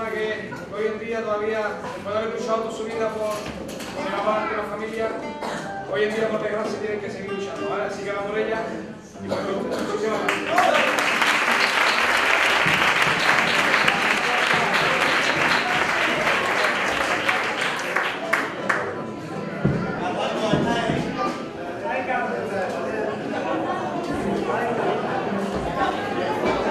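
A group of men sing together in a choir.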